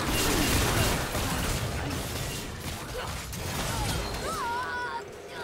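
Magic blasts and sword strikes clash in a hectic video game battle.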